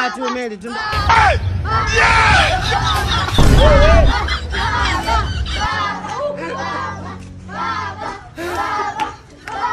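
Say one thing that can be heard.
Children shout and cheer outdoors.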